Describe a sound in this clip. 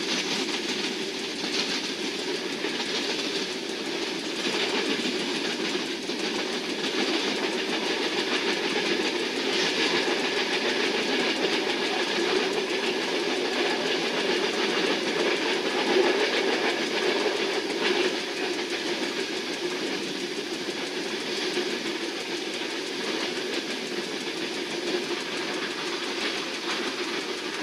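Wheels clatter and rattle over the track joints.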